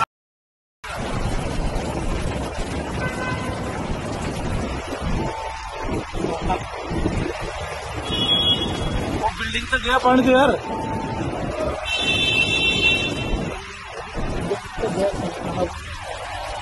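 An auto rickshaw engine putters nearby.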